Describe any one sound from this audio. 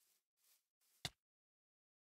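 A sharp hit lands with a heavy thump.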